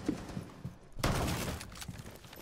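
A wooden wall bursts apart with splintering cracks.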